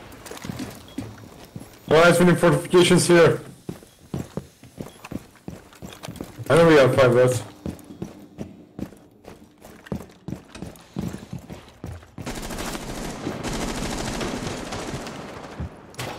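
Footsteps thud on hard floors.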